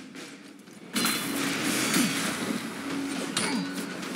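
Magic spell effects whoosh and shimmer.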